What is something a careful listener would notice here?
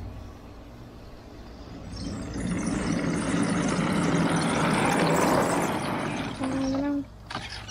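A small tracked vehicle rumbles and clatters as it drives closer across grass.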